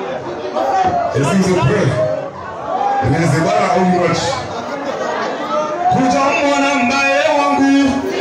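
Loud music with singing plays over loudspeakers in an echoing hall.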